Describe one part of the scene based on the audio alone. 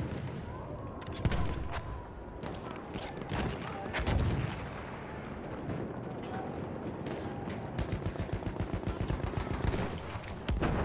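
Gunshots crack and boom around, some near and some far off.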